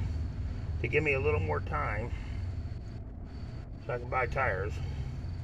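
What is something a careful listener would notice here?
A man speaks close by in a calm voice.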